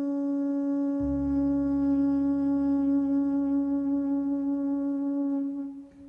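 A double bass plays a low sustained note.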